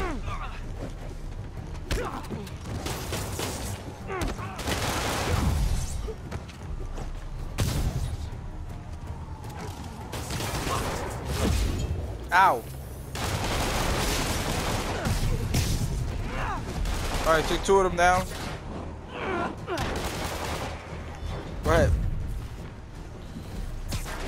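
Punches and kicks land with heavy thuds during a brawl.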